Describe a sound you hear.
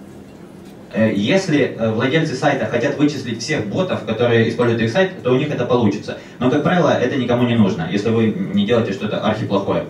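A young man speaks calmly through a microphone in a large room.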